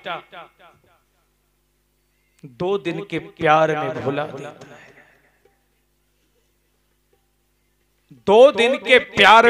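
A man sings loudly into a microphone, heard through a loudspeaker.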